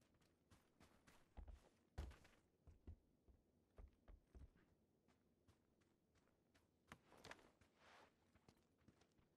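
Quick footsteps thud and scuff on hard ground.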